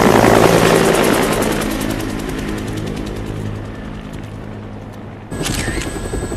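A helicopter's rotor thumps rapidly overhead and fades into the distance.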